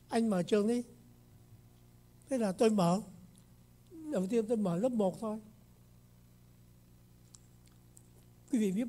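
An elderly man speaks slowly and deliberately into a microphone, in short phrases with pauses.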